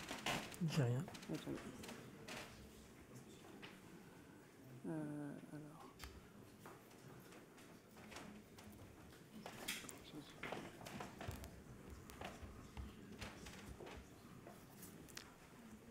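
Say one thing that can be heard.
A man clicks keys on a laptop keyboard.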